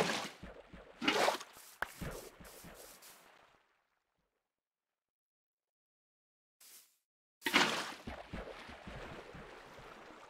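Water splashes and pours out of a bucket.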